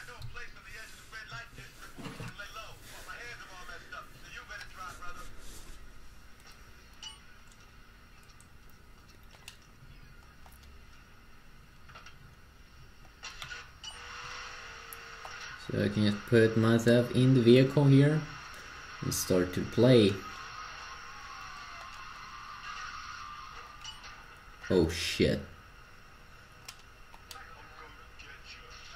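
Game sounds and music play from a small phone speaker.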